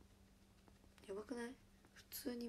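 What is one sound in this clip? A young woman speaks briefly and casually, close by.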